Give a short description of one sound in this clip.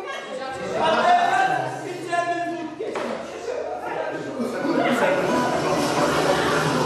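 Music plays through a loudspeaker in a room.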